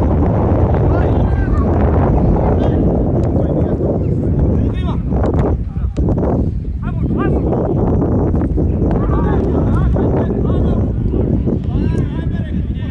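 Men shout to each other in the distance outdoors.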